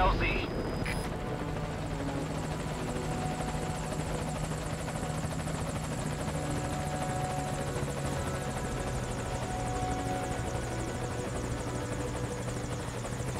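A helicopter drones in the distance.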